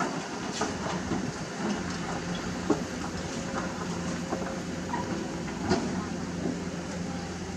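Rocks clatter and knock under an excavator.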